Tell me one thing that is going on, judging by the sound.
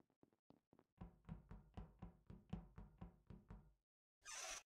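Quick, soft footsteps patter in a steady rhythm.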